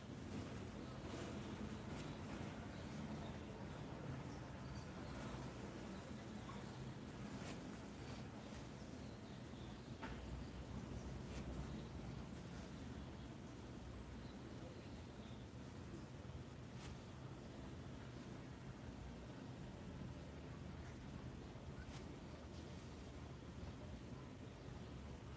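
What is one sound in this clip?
A paintbrush strokes softly across cloth.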